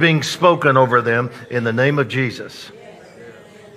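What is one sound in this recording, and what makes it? A middle-aged man speaks with strong emotion into a microphone, heard over loudspeakers in a large room.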